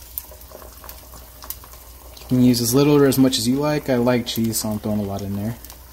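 A bowl knocks lightly against a frying pan.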